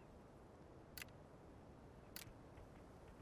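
Short game menu clicks sound twice.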